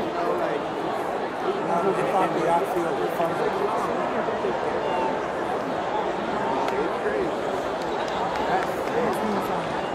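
Many voices chatter and murmur in a large open space.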